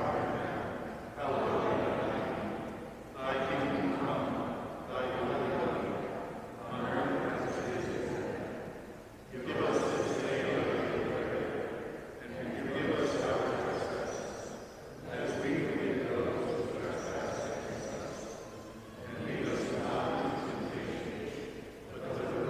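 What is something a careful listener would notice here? A man chants in phrases through a microphone, echoing in a large hall.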